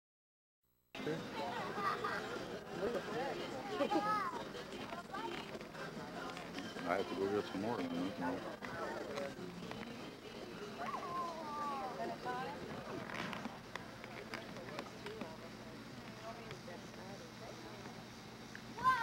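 Men and women chat and talk over each other outdoors.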